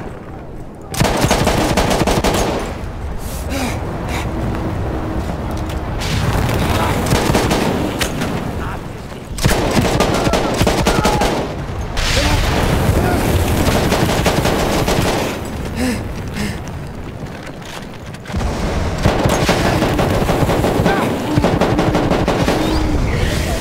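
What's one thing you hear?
A machine gun fires in long, rapid bursts.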